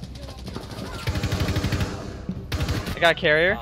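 A submachine gun fires.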